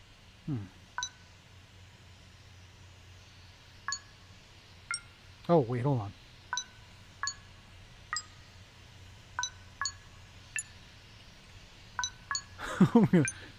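Short electronic beeps sound as the buttons of a keypad are pressed one after another.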